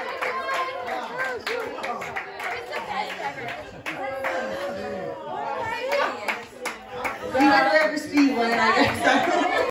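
Young women laugh and chatter close by.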